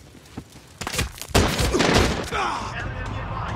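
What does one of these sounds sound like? Gunshots crack in a sudden burst.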